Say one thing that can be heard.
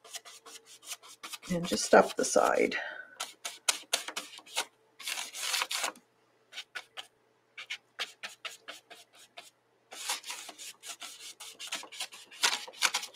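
A brush scrubs and taps against paper.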